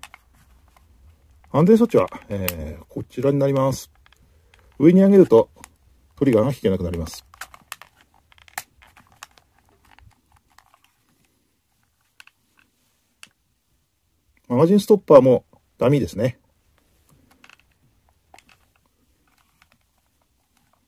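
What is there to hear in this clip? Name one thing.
Small metal parts of a pistol click as it is handled.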